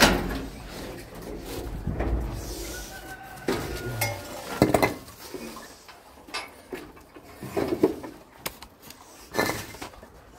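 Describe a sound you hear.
A plastic sheet rustles and crinkles as it is pushed aside.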